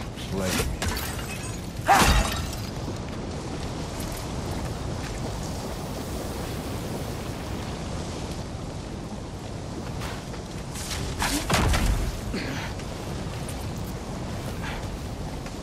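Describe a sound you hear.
Molten lava roars and crackles nearby.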